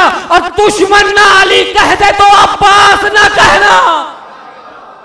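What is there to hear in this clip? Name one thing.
A young man recites forcefully through a microphone, echoing in a hall.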